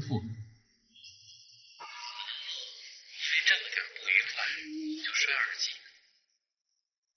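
A man's voice comes faintly through a phone.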